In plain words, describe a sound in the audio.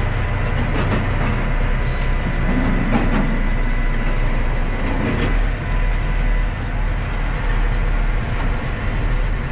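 A heavy diesel engine rumbles steadily close by.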